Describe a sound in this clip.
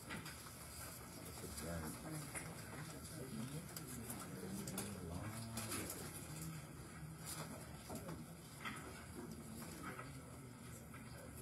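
A man speaks calmly through a loudspeaker in a large echoing room.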